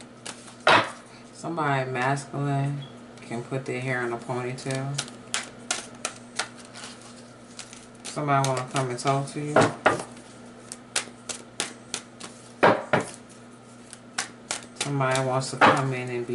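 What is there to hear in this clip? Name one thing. Cards are shuffled, clicking and slapping softly.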